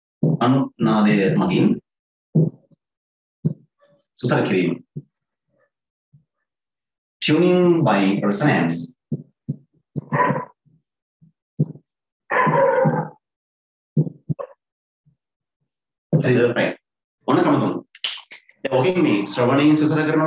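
A young man speaks with animation into a close microphone, in short bursts with pauses.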